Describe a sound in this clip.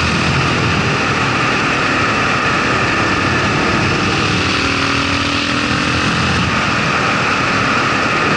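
Wind rushes past the rider.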